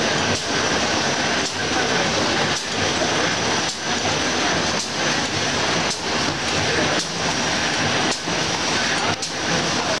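A machine roars loudly and steadily.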